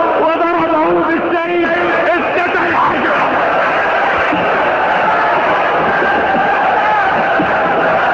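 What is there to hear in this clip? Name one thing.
An elderly man recites with strong emotion into a microphone, heard through loudspeakers.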